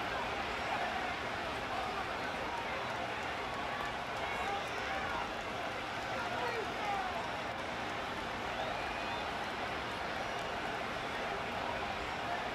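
A large crowd roars and murmurs steadily in a stadium.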